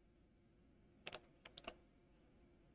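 Plastic parts click softly as hands handle them.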